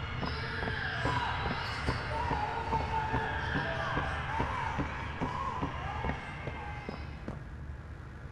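Footsteps thud steadily along a hard floor.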